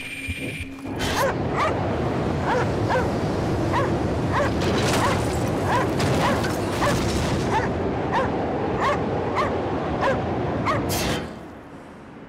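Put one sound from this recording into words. A strong wind roars and howls in a blizzard.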